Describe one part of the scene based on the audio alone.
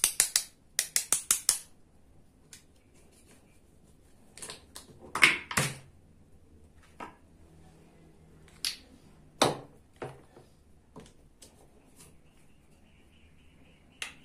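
Plastic toy food pieces clack as they are pulled apart.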